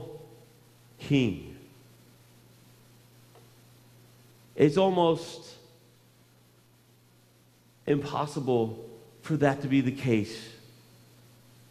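A man speaks with animation through a microphone in a large echoing hall, pausing between phrases.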